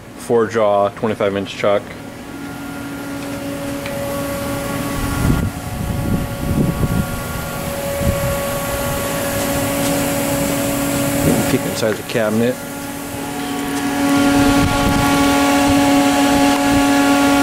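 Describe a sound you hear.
A machine hums steadily with a high whine.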